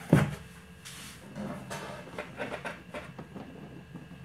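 A sheet of paper rustles and crinkles.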